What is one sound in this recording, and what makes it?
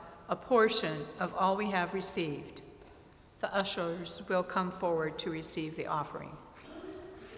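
An elderly woman reads aloud through a microphone in a large echoing hall.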